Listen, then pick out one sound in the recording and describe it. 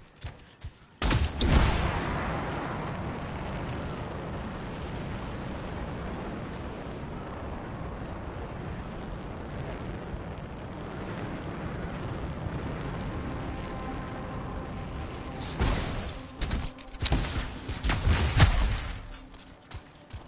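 A jet thruster roars loudly and steadily, then cuts out.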